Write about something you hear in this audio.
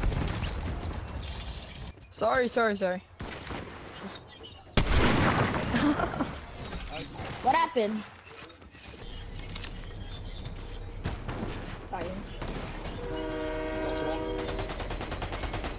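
Gunshots from a video game crack in quick bursts.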